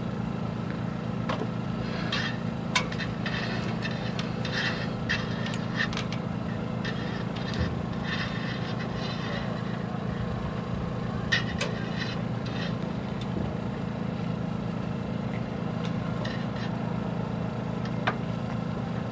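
Metal fittings clink and rattle against a sailboat mast.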